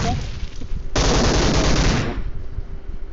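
An automatic rifle fires a rapid burst.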